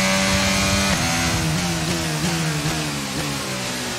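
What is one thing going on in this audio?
A racing car engine stutters down through the gears as the car slows.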